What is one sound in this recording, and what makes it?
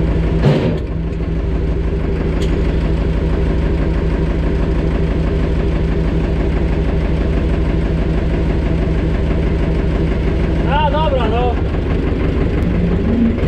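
A tractor engine rumbles steadily from close by.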